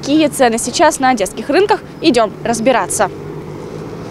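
A young woman speaks clearly into a microphone outdoors.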